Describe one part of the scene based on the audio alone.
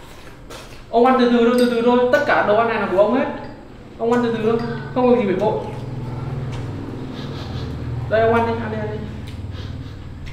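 A young man speaks nearby.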